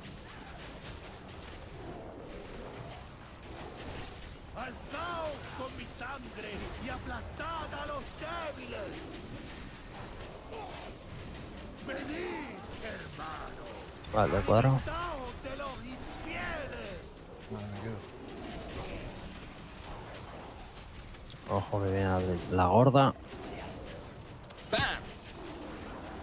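Magic spells crackle and whoosh during a fantasy battle.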